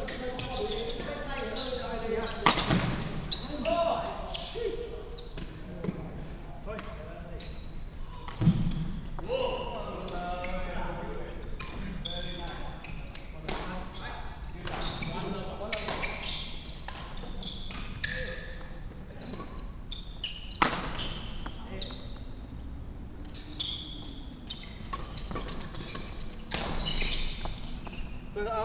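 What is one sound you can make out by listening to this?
Young men call out to each other across the hall.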